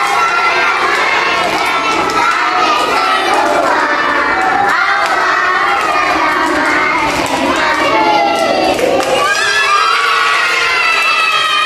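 Young children clap their hands.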